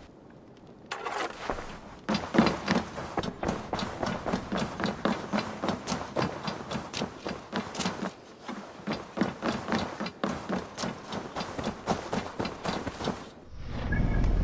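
Footsteps thud quickly across wooden boards and grass.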